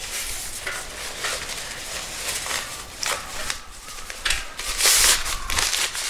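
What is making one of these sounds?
A nylon stuff sack rustles as it is pulled off a metal stove.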